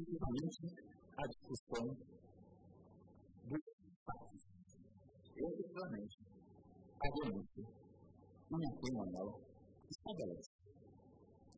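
A middle-aged man speaks formally into a microphone.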